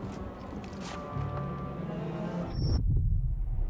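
A figure slides quickly down a rope with a whirring hiss.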